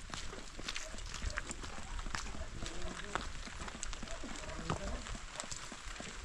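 Footsteps squelch through wet mud.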